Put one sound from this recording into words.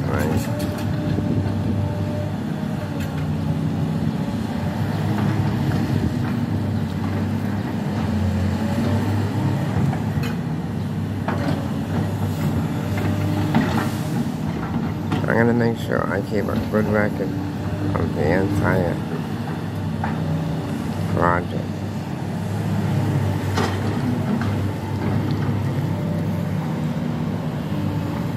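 An excavator's diesel engine rumbles steadily nearby.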